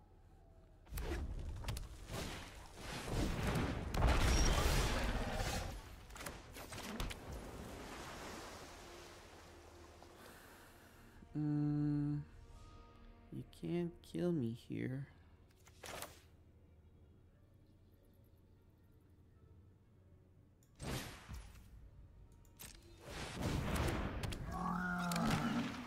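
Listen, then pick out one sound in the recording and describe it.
Digital card game effects whoosh and thud as cards are played.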